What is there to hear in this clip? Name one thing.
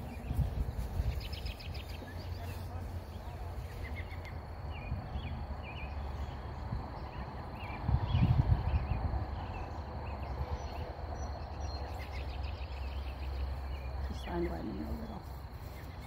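Footsteps walk over grass.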